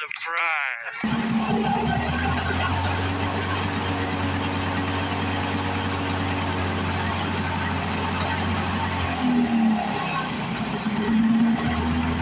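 A lawn mower engine idles with a steady rumble.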